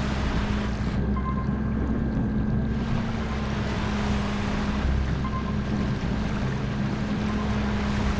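Water gurgles in a muffled rush as a submarine dives underwater.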